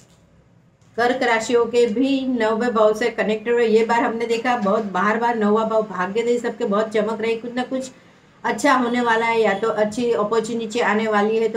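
A middle-aged woman speaks calmly and with animation close by.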